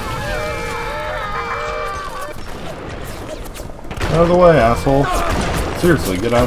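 An explosion booms with a roaring burst of fire.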